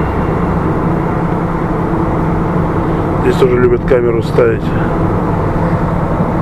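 An engine hums and tyres rumble steadily on a highway from inside a moving vehicle.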